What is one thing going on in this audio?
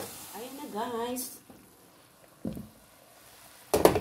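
A glass lid clinks onto a pan.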